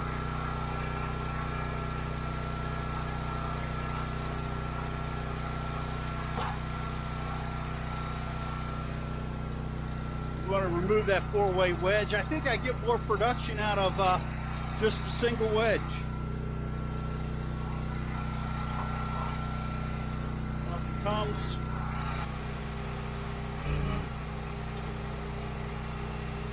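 A small engine idles with a steady low hum.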